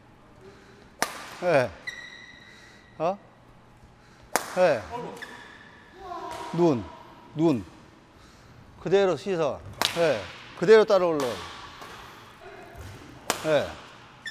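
A racket sharply strikes a shuttlecock.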